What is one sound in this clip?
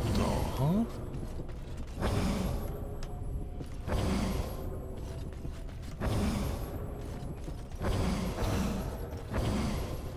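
A magic spell crackles and whooshes in repeated bursts.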